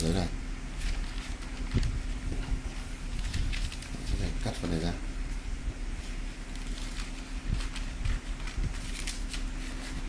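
Sheets of paper rustle and crinkle as they are handled.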